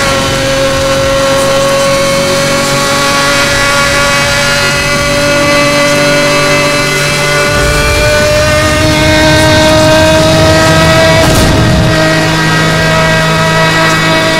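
A high-revving race car engine screams steadily and slowly climbs in pitch.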